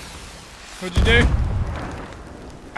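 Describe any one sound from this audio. A cannon fires with a deep boom.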